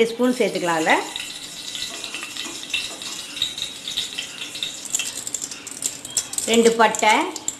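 Hot oil sizzles softly in a pot.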